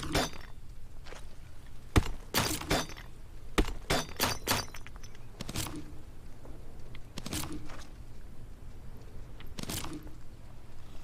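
Stones knock and clatter as they are picked up from a rock.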